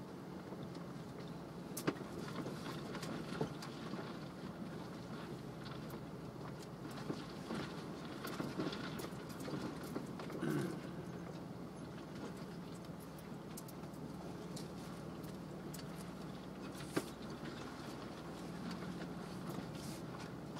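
A car's body creaks and knocks as it rocks over rough rock.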